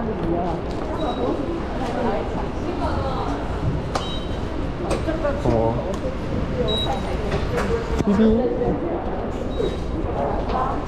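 Ticket gates beep briefly as people pass through.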